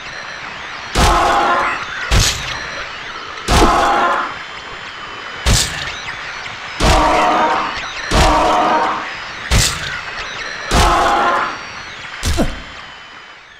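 A metal pipe strikes a body with heavy thuds.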